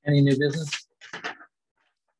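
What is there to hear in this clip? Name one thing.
Paper rustles close to a microphone.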